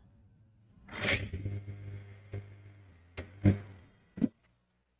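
A sewing machine motor hums while stitching.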